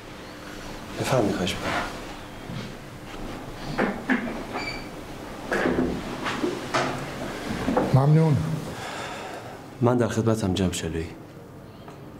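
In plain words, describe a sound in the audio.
An elderly man speaks in a low, serious voice.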